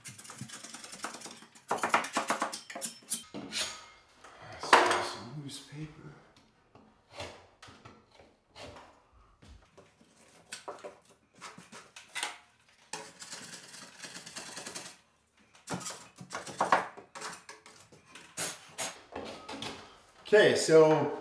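A putty knife scrapes against drywall in short strokes.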